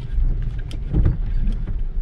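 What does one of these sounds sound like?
A windshield wiper swipes across the glass.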